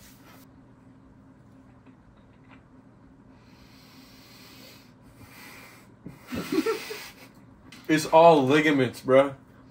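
A second young man laughs and talks.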